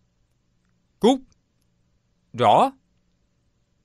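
A second man answers briefly, close by.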